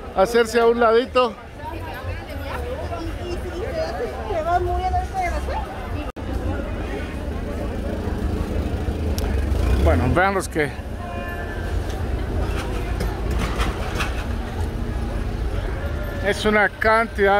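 A crowd of people chatters in a busy outdoor street.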